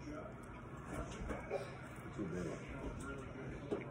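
A young boy crunches on food while chewing.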